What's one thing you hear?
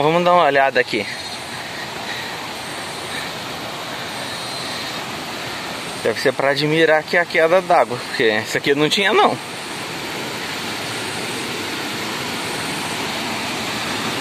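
A stream rushes steadily over rocks nearby.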